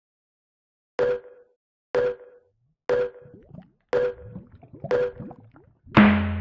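Short electronic game effects pop at an even beat.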